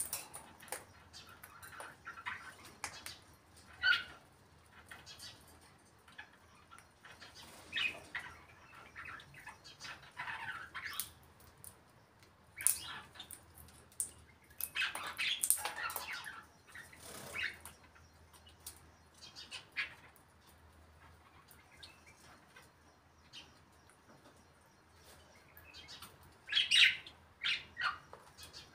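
A parrot squawks and chatters in short bursts close by.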